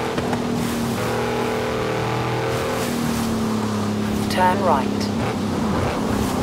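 A car engine hums steadily as it drives fast, rising and falling in pitch with gear changes.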